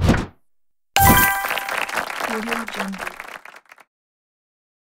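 A cheerful electronic victory fanfare plays.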